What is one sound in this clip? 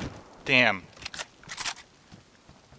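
A rifle's metal parts click as it is handled.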